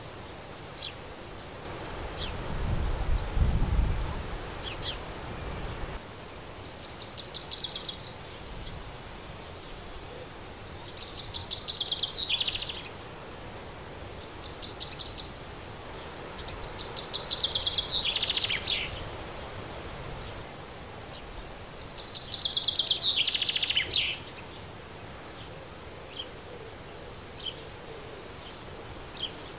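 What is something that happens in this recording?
Sparrows chirp and trill in quick bursts nearby, outdoors.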